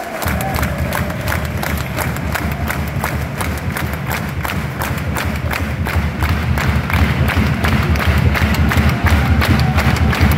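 A large crowd claps in rhythm close by, in a big open stadium.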